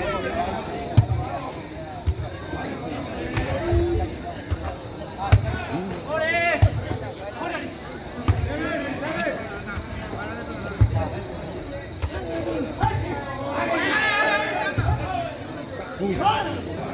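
A ball is kicked with sharp thuds, again and again.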